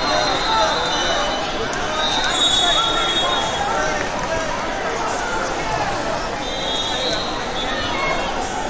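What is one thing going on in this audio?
Shoes squeak sharply on a mat.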